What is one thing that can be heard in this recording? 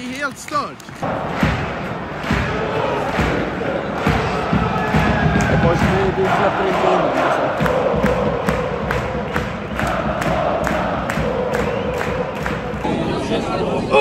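A large stadium crowd chants and claps in rhythm.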